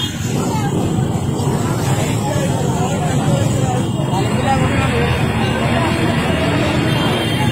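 A crowd of people shouts and chants outdoors.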